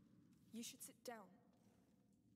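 A young woman speaks softly and close.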